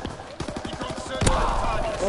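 Rapid gunfire cracks close by.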